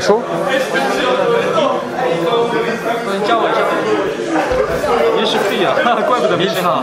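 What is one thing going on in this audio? Several young men talk and laugh together close by.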